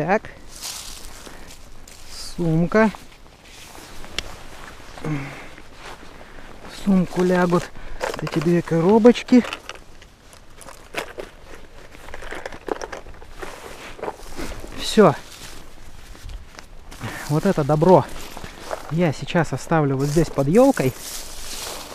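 Fabric rustles as a bag is handled close by.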